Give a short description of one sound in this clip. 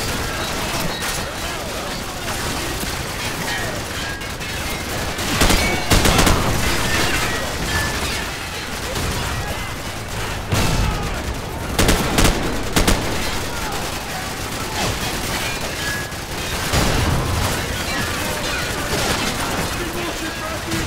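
Gunfire crackles and booms around, loud and close.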